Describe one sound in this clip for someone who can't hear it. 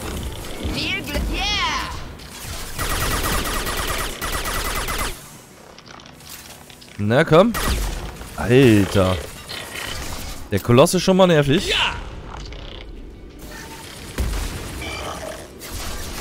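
A crackling energy blast whooshes.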